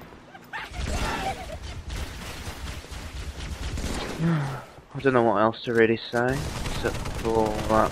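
An assault rifle fires.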